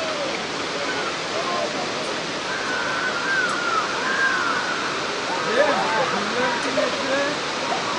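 Water ripples and laps softly.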